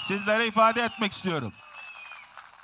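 A man speaks with animation into a microphone over loudspeakers.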